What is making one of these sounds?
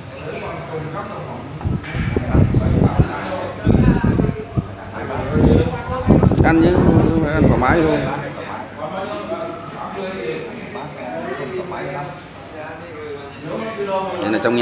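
Several men and women chat loudly nearby.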